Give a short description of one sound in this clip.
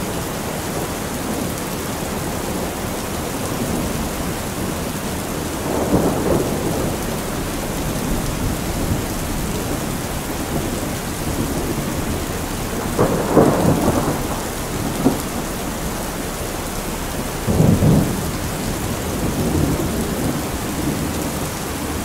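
Heavy rain pours steadily onto a metal roof.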